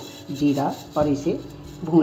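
Seeds pour and patter into a metal pan.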